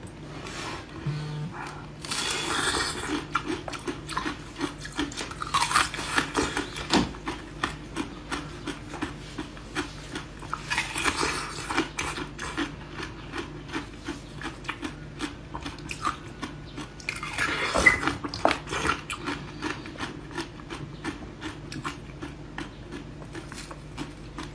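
A young woman chews crunchily with crackling and crinkling close to a microphone.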